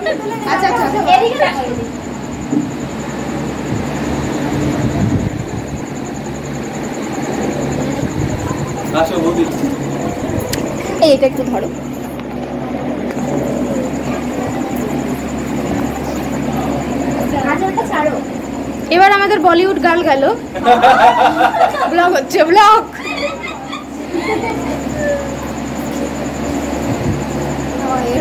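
Several women talk and chatter nearby.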